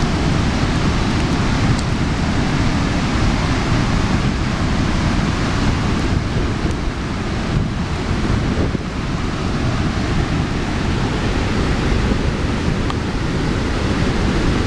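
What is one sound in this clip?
Wind blows hard and rumbles against a microphone outdoors.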